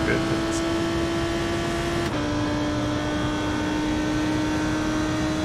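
A race car engine drones at a steady high pitch, dropping once as it shifts gear.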